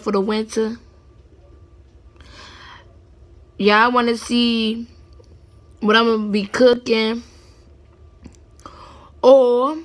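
A young woman talks with animation close to a phone microphone, in short bursts.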